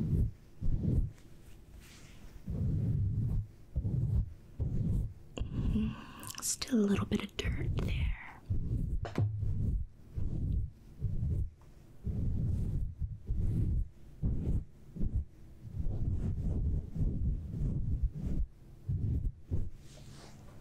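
Soft fluffy material brushes and rubs against a microphone in slow, repeated bursts.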